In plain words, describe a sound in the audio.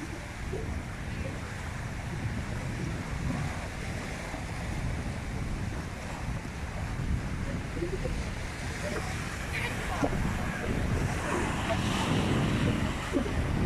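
Wind blusters into the microphone outdoors.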